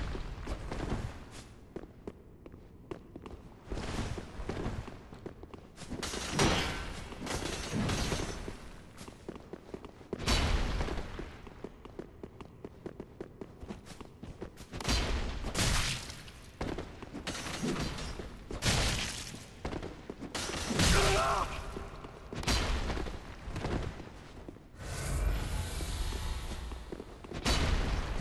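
Swords clash and strike armour in a fight.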